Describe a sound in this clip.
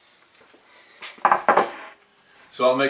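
A wooden board thumps down onto a workbench.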